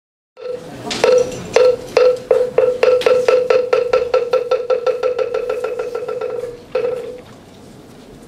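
A wooden block is struck in a steady beat that speeds up and then stops.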